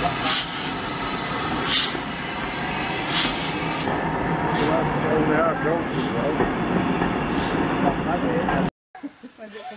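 A train rumbles slowly along the rails.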